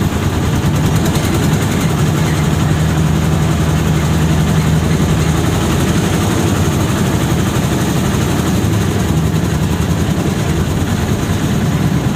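A vehicle's engine rumbles steadily while driving along a road.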